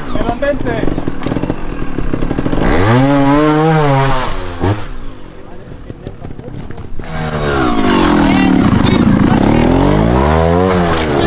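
A motorcycle engine revs hard in rising and falling bursts.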